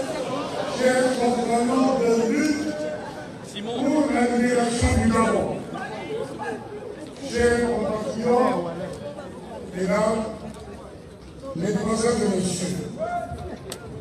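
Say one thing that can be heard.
A man speaks forcefully into a microphone over loudspeakers outdoors.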